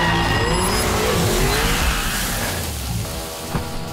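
A car's tyres screech as it drifts round a bend.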